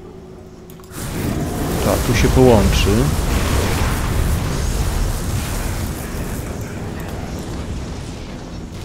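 Fiery blasts roar and crackle in a rush.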